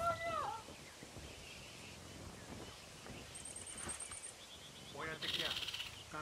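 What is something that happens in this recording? A large cat's paws pad softly on dry dirt.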